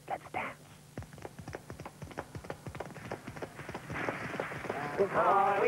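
Feet tap in a quick, even rhythm.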